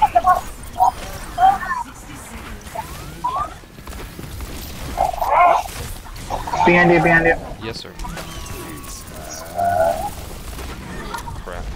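Energy weapons fire in quick bursts with sharp zaps and blasts.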